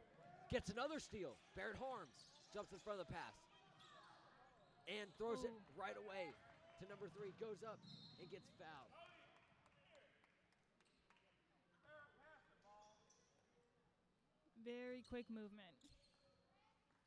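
Sneakers squeak sharply on a court floor in a large echoing gym.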